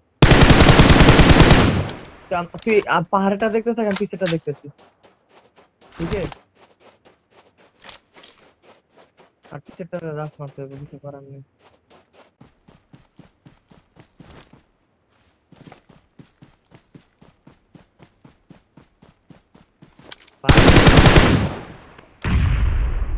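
A rifle fires loud shots in quick succession.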